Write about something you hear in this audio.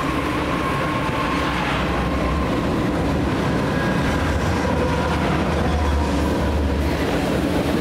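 Diesel locomotives rumble and drone loudly as they pass.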